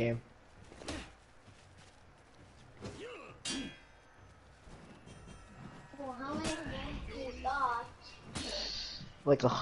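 Swords clash and ring with sharp metallic strikes.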